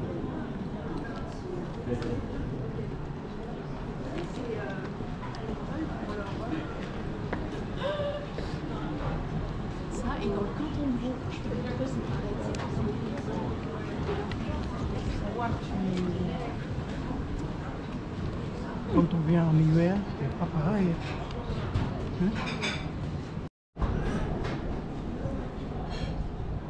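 A crowd of men and women chat casually nearby, outdoors.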